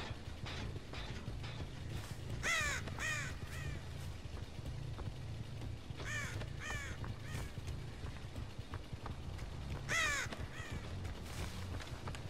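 Heavy footsteps tread over grass and wooden boards.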